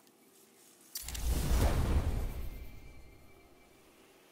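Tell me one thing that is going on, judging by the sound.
A deep rushing whoosh swells up and slowly fades.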